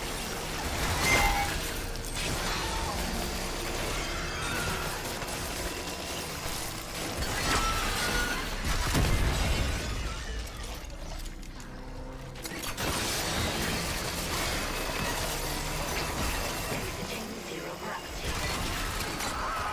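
Gunfire bursts out in sharp blasts.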